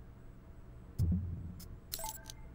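A short electronic menu sound plays as a prompt pops up.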